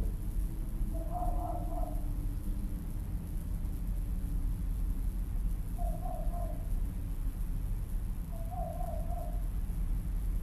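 Birds call now and then far off.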